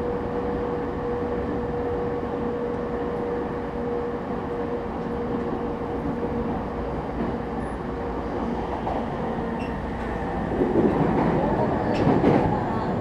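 A standing electric train hums steadily.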